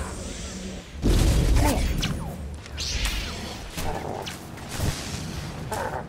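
A lightsaber hums and swooshes through the air.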